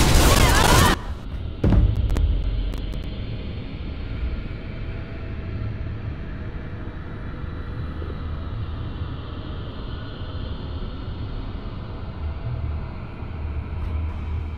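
A low, dull ambient hum drones quietly.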